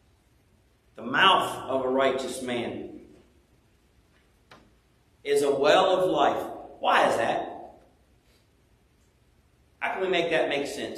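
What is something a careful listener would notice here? A man speaks calmly into a microphone in an echoing room, pausing between phrases.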